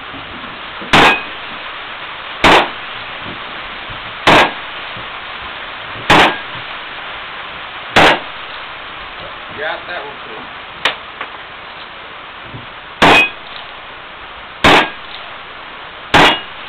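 A revolver fires loud shots at a steady pace.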